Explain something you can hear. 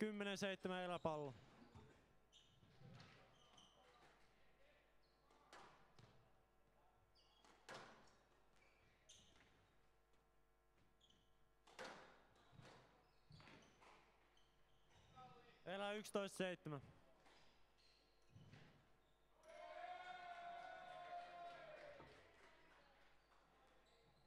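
A squash ball is struck hard and smacks against the walls in an echoing court.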